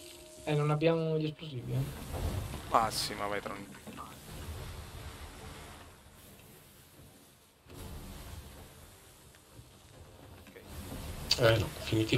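Waves wash and splash against a wooden ship's hull.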